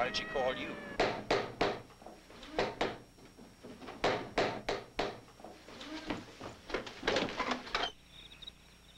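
Heavy thuds bang out in quick bursts.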